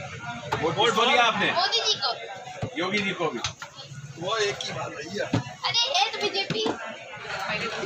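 Several men talk and laugh nearby.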